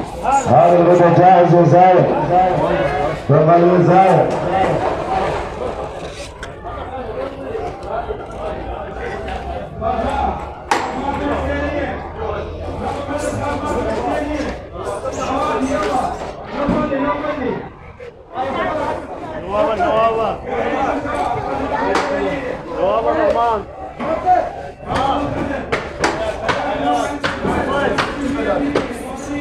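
A crowd of men talks and chants loudly close by.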